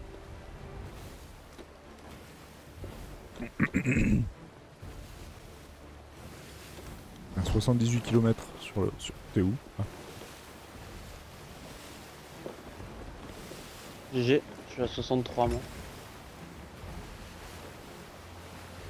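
Rough sea waves wash against a wooden ship.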